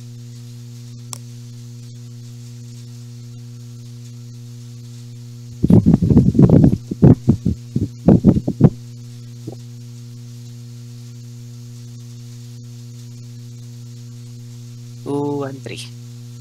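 Playing cards slide and tap on a table.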